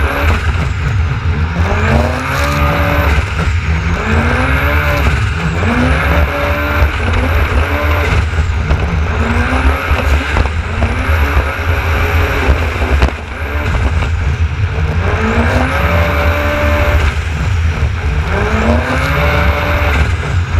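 A jet ski engine roars and revs up and down repeatedly.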